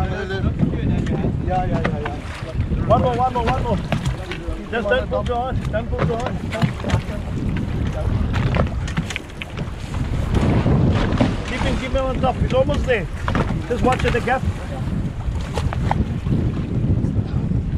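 Water splashes and churns against a boat's hull.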